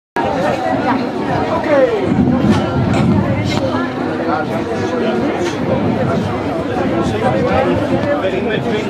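A group of men sing together loudly.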